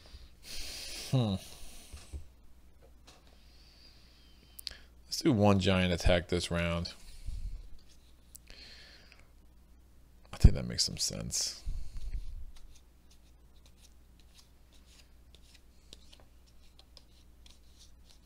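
Playing cards rustle and slide as a hand handles them.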